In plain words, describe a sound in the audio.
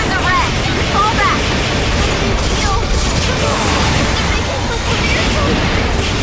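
A weapon blasts a roaring stream of fire.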